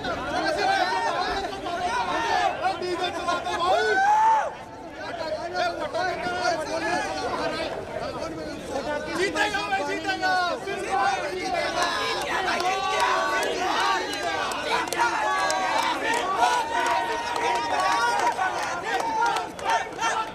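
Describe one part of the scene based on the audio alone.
A crowd of young men cheer and shout excitedly outdoors.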